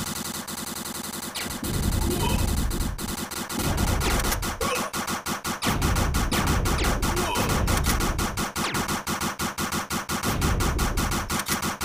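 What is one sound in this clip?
Video game gunfire rattles in rapid bursts.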